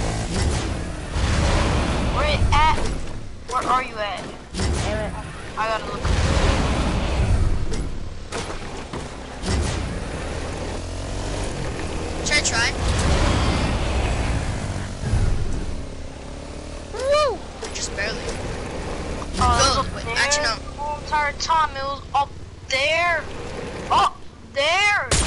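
A video game quad bike's engine drones as it drives.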